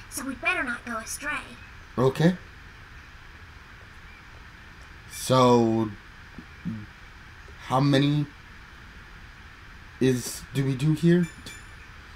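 A man talks in short bursts through a microphone.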